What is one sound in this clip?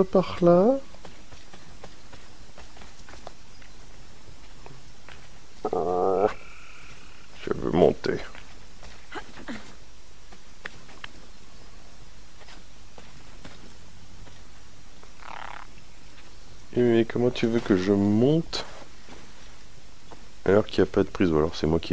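Footsteps patter quickly over grass and earth.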